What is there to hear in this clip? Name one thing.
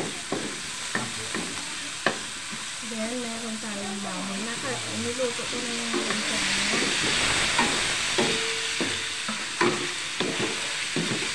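A wooden spatula scrapes and knocks against a metal wok.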